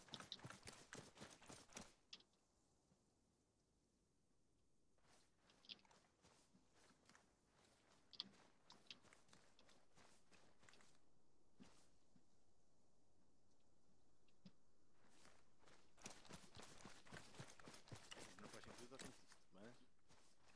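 Footsteps thud on grass.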